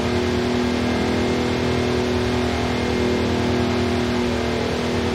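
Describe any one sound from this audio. A car engine hums steadily at cruising speed.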